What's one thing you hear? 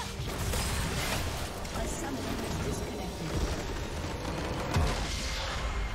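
Game combat effects clash and zap rapidly.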